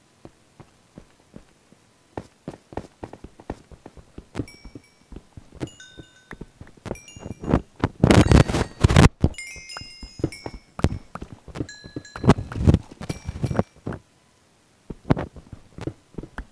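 A video game pickaxe chips rapidly at stone blocks.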